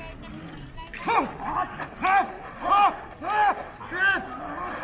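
Men shout loud battle cries outdoors.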